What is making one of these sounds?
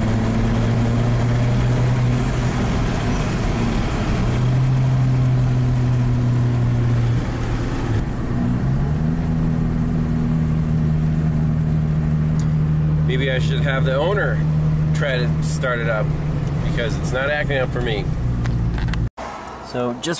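A car engine hums steadily and revs up.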